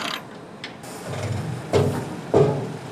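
A hydraulic machine hums with a low drone and loud clunks.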